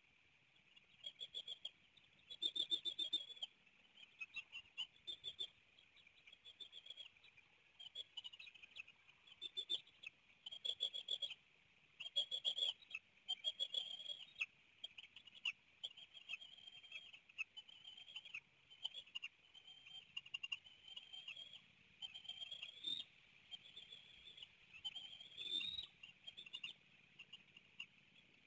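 Young eagles chirp and squeal repeatedly, close by.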